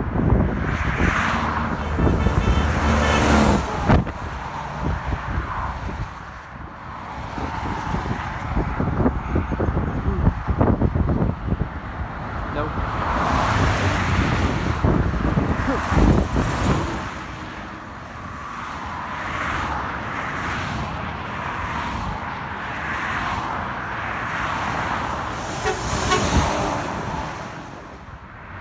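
Cars and trucks rush past on a highway, with tyres roaring close by.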